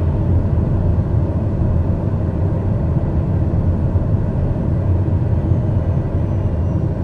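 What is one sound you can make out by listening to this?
A jet's engines drone with a deep, steady rumble.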